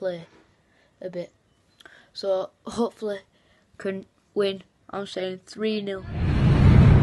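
A boy talks with animation close to a phone microphone.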